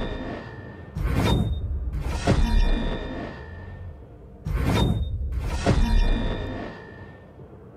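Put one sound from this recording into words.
A deep whooshing game effect booms with a ringing chime.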